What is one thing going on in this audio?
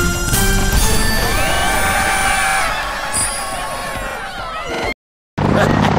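A cheerful victory jingle plays with bright chimes.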